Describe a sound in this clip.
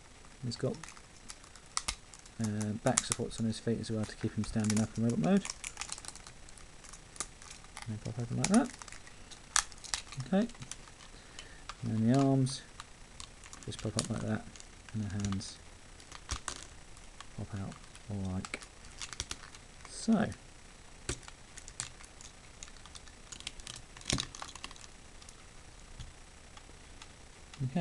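Plastic toy parts click and snap as they are twisted into place.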